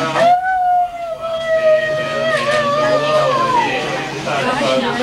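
A woman wails and sobs loudly in grief.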